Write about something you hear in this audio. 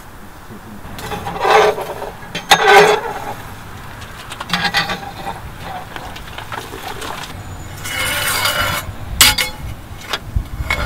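A metal tool scrapes and rakes over embers in a brick oven.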